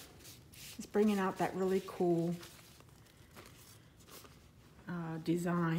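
A wet paper sheet peels off a surface.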